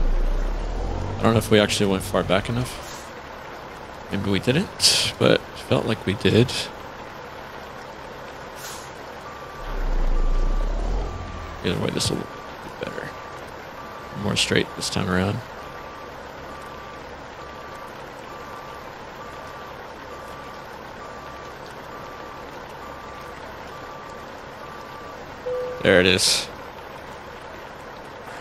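A truck engine idles with a low steady rumble.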